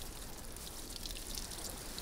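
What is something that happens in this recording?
Water pours from a watering can.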